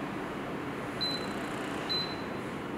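An appliance's control panel beeps when touched.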